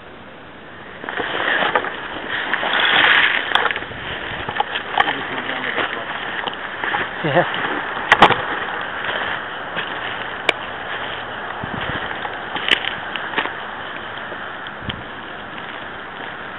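Footsteps crunch over dry pine needles and twigs outdoors.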